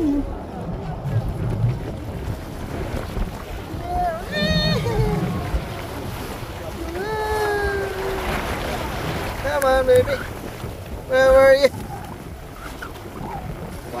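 Water splashes and rushes along a moving boat's hull.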